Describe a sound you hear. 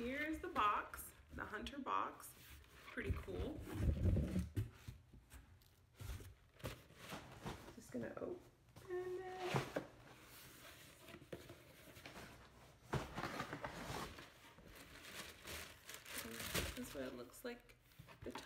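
Cardboard boxes rustle and thump as they are handled.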